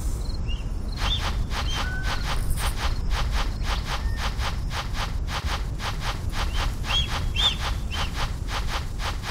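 Paws pound quickly and steadily on dry ground.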